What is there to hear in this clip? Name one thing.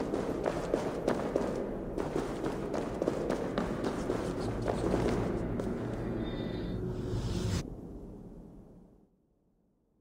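A low rumbling drone echoes in a large cavern and fades.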